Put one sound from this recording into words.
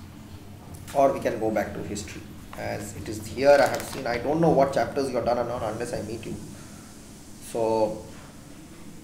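A man speaks calmly close to the microphone.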